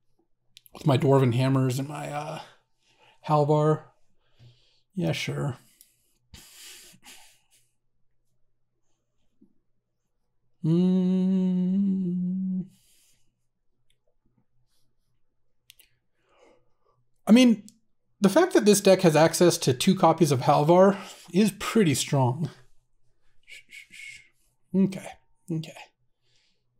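A man talks with animation into a close microphone, with long pauses.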